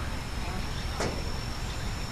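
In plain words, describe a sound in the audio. A ball thuds into a catcher's mitt.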